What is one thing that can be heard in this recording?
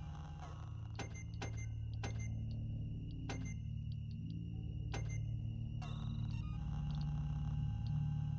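Soft electronic clicks and beeps sound as a menu is browsed.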